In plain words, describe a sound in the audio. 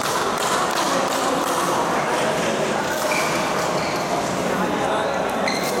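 A crowd of people chatter, echoing in a large hall.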